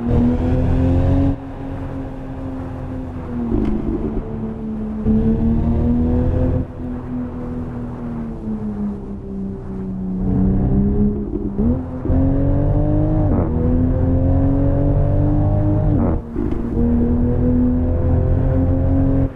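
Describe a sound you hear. A car engine hums steadily, its pitch rising and falling with the throttle.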